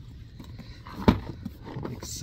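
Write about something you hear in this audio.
A cardboard box thumps as it is handled.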